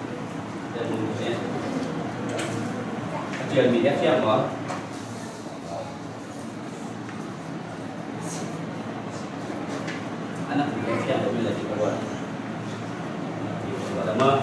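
A middle-aged man speaks calmly into a microphone in a room with some echo.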